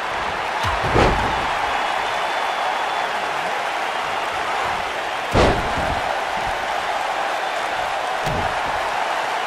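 Heavy thuds land on a wrestling mat.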